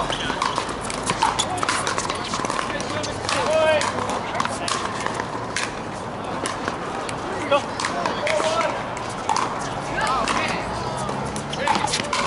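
Shoes squeak and scuff on a hard court.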